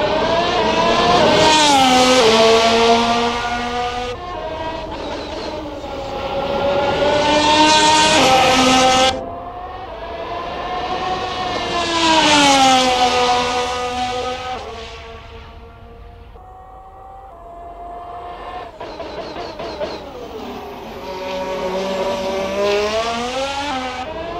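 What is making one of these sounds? A racing car engine screams at high revs, rising and falling in pitch as it shifts gears and passes by.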